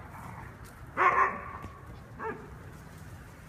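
A dog barks loudly nearby.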